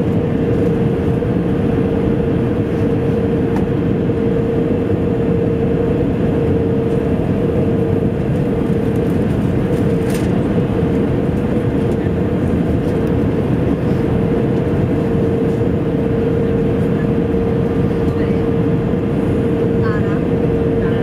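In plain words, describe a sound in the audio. A jet engine roars steadily with a constant high hum, heard from inside the cabin.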